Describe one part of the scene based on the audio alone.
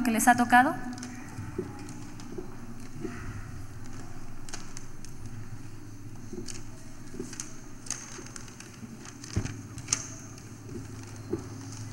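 Paper rustles and crinkles close to a microphone.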